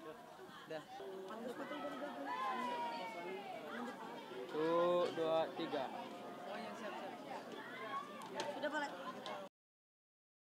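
Young boys chatter and laugh together close by.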